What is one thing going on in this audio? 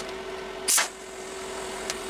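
A TIG welding arc buzzes.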